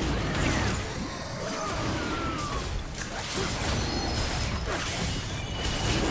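Magic spells whoosh and crackle in a fast fantasy battle.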